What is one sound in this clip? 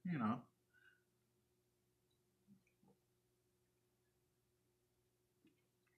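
A man gulps a drink from a bottle.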